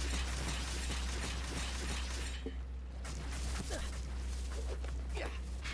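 A gun fires rapid bursts of fiery blasts.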